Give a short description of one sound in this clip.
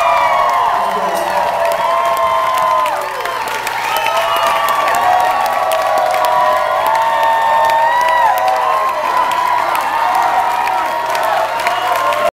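A large crowd cheers and whistles loudly in an echoing hall.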